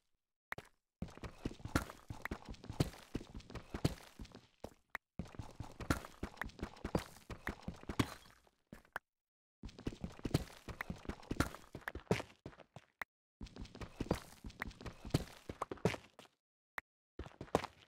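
A pickaxe chips rapidly at stone in short bursts.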